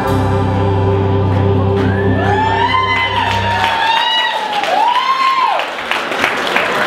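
An electric guitar plays loud, bending notes through an amplifier.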